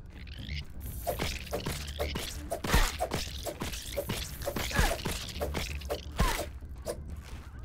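A spear strikes a creature with wet, splattering hits.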